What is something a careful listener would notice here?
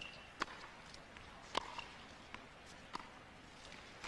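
A tennis ball is struck back and forth with sharp pops from the rackets.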